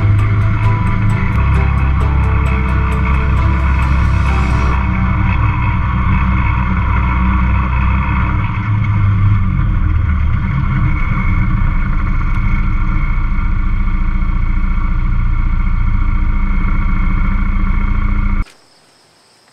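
A utility vehicle's engine drones loudly and steadily while driving.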